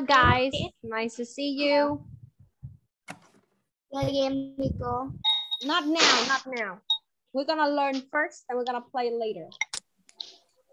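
A young girl speaks through an online call.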